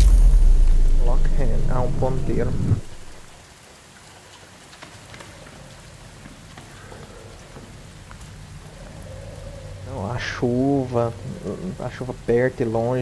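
A young man talks close to a microphone, with animation.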